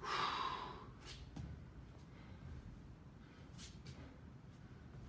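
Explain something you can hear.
Sneakers step on a boxing ring floor.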